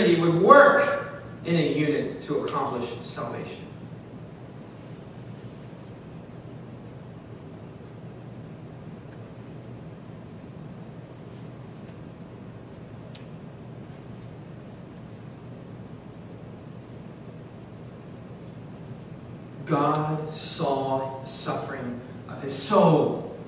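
A young man speaks steadily through a microphone, with a long pause.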